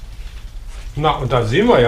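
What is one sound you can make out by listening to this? A man speaks up close.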